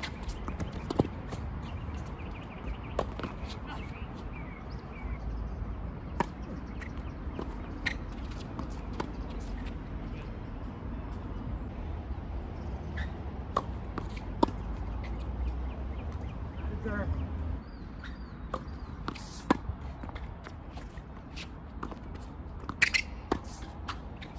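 Tennis balls pop off rackets in a rally outdoors.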